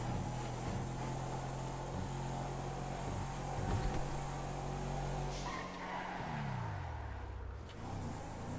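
A car engine hums steadily, then winds down as the car slows.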